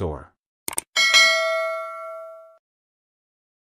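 A bell chimes once and rings out.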